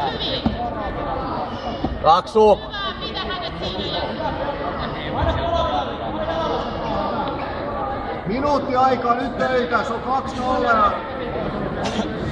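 Men shout from the sidelines in a large echoing hall.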